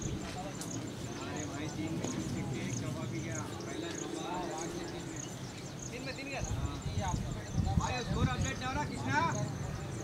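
Young men call out and chat at a distance.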